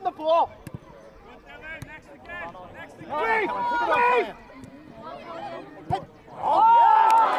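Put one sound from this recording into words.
Young players and spectators shout across an open pitch.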